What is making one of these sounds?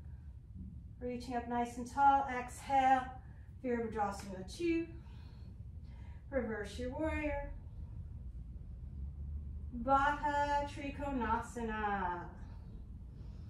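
A woman speaks calmly and slowly, as if guiding, close to the microphone.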